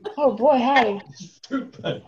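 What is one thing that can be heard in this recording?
An elderly man laughs heartily over an online call.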